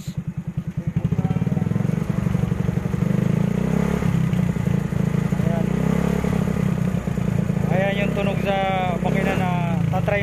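A motorcycle engine revs up and runs faster and louder.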